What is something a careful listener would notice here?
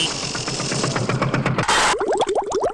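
Waves splash and churn in open water.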